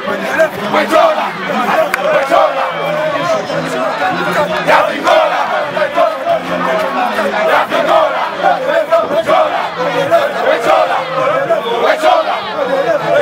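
A crowd of men sings loudly together outdoors.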